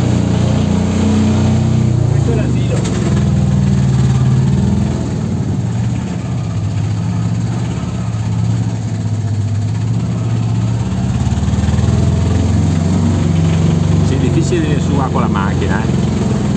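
A small engine putters and rattles steadily up close.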